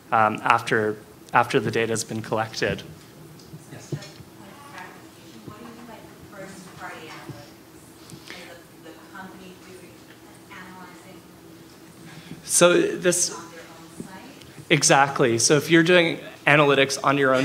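A young man talks calmly through a microphone.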